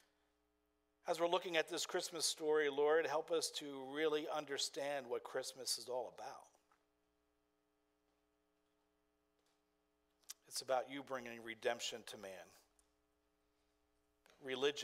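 An older man speaks calmly and clearly into a microphone, with pauses between phrases.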